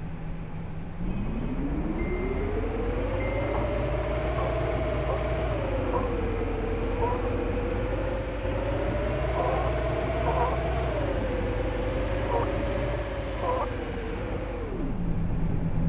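A bus engine revs up and hums steadily as the bus drives, then cuts off.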